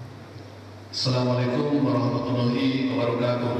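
A man speaks with animation through a microphone and loudspeakers in an echoing hall.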